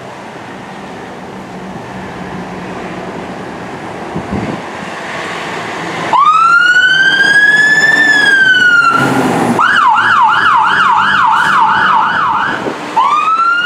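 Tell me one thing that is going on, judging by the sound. A heavy truck engine rumbles as it drives past.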